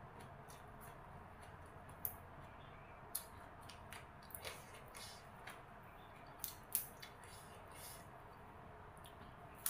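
Fresh herb stems snap and rustle close by.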